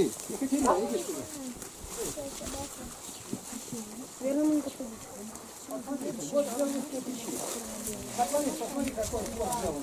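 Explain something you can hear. Several people murmur and talk nearby.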